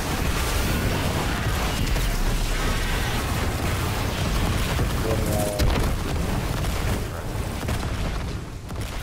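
Gunfire and explosions boom and crackle in a loud game battle.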